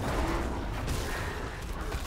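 Magic blasts burst and crackle in a fight.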